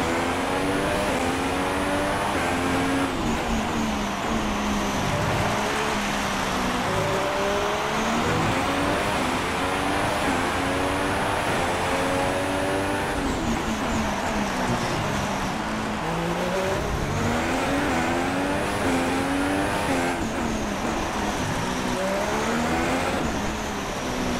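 A Formula One car's engine revs up through the gears and drops as it brakes for corners in a racing video game.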